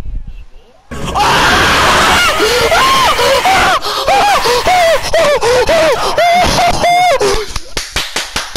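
A young man screams with excitement close to a microphone.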